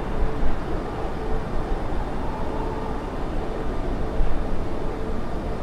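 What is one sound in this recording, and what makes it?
Jet engines roar steadily with a deep rumble of rushing air.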